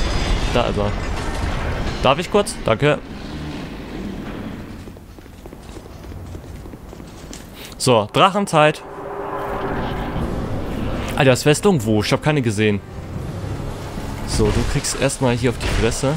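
A huge beast roars and growls.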